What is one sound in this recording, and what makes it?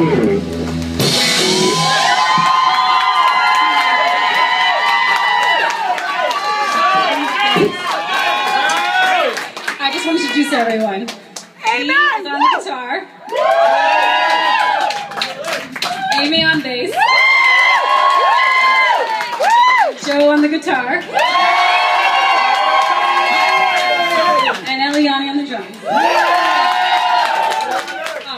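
A woman sings loudly into a microphone in a live, amplified setting.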